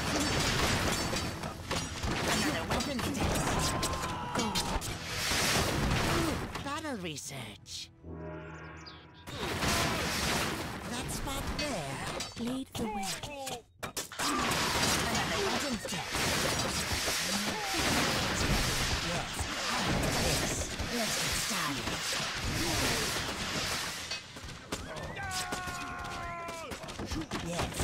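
Weapons clash and clatter in a noisy battle.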